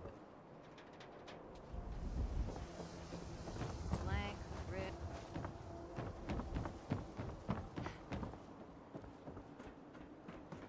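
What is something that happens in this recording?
Footsteps thud on wooden boards at a walking pace.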